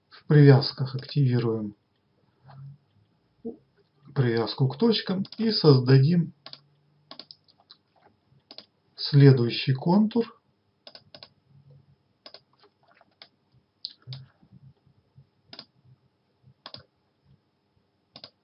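A computer mouse clicks several times.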